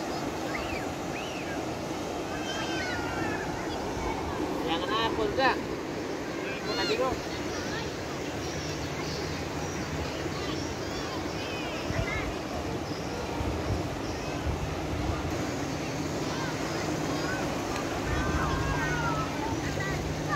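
Water rushes and roars across a wide riverbed.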